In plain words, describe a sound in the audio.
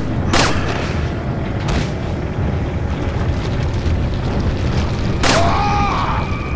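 A pistol fires sharp shots that ring out with an echo.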